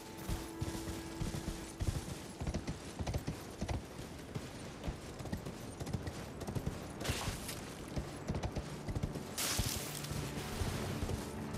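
Horse hooves clop steadily on wood and ground.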